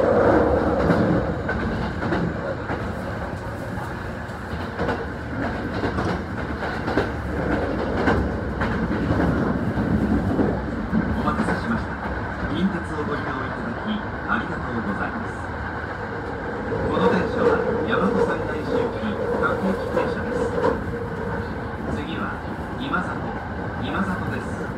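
An electric train hums steadily nearby.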